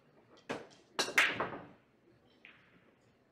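Billiard balls clack together loudly and scatter across a table.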